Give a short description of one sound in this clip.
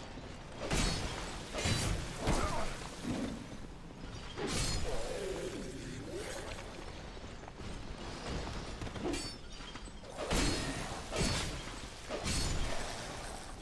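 Swords clang and strike in a fight.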